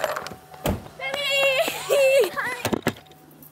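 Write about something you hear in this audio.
Young girls shriek with excitement close by.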